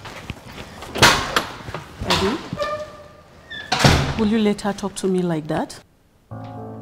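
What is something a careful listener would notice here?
A middle-aged woman speaks in a complaining tone, close by.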